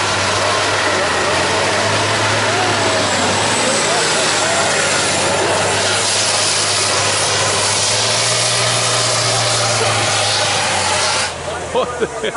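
A truck engine roars loudly.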